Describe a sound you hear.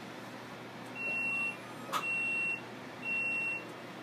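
A printing press control panel beeps as buttons are pressed.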